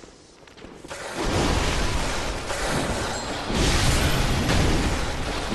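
Blades slash and strike in a fight.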